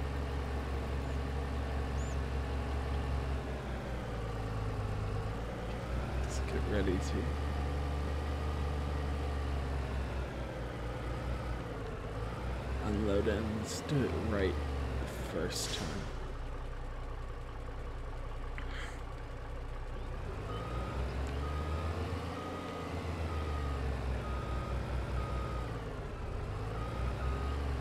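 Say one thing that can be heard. A heavy truck's diesel engine rumbles and changes pitch as it drives.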